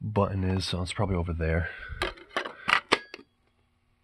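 A plastic lid clicks shut.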